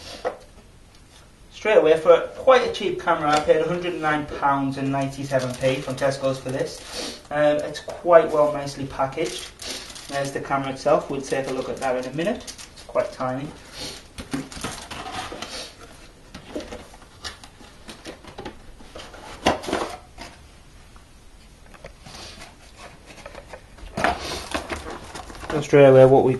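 Cardboard packaging rustles and scrapes.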